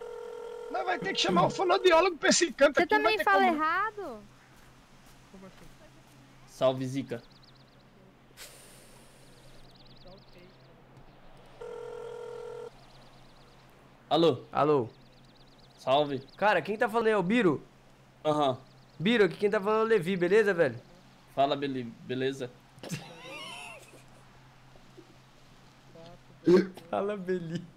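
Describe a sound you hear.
A young man talks animatedly into a close microphone.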